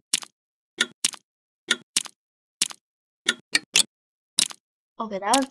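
A small ball bounces with short, sharp taps.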